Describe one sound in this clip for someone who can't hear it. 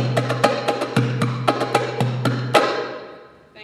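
A hand drum is played with quick, sharp strokes.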